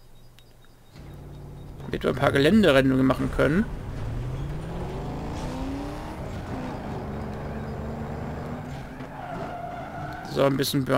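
A car engine revs and roars, then hums steadily.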